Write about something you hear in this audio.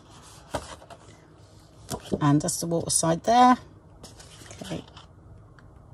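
Paper rustles as a sheet is lifted and laid down.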